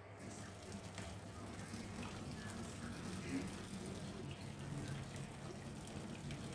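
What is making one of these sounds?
A metal pot clanks against a sink.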